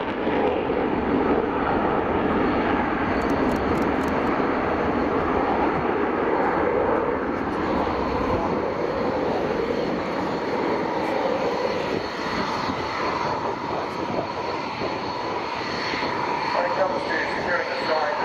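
A jet engine roars loudly overhead with a steady, rushing rumble.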